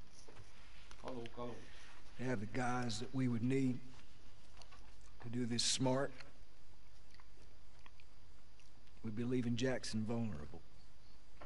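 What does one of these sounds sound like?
A man speaks quietly and seriously, close by.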